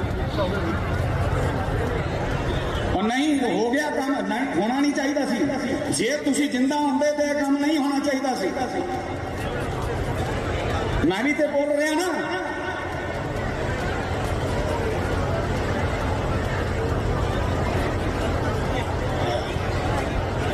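A large crowd murmurs in the background.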